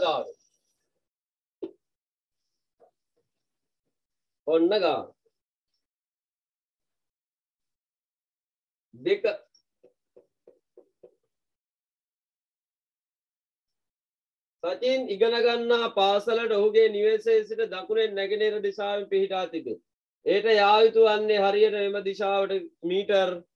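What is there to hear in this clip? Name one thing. A man speaks calmly, reading out, close by.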